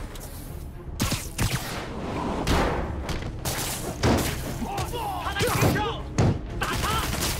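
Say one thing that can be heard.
Heavy punches and kicks land with thuds.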